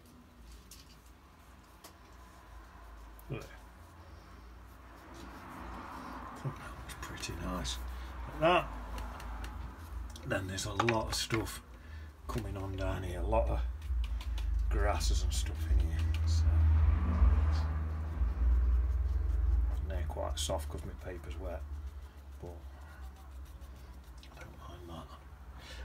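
A brush dabs and scrapes softly on paper.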